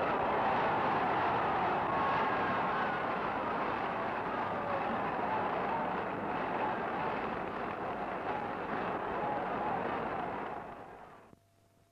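A huge crowd cheers and roars outdoors, then fades away.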